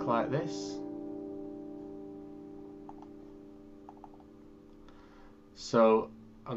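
An acoustic guitar chord rings out and slowly fades.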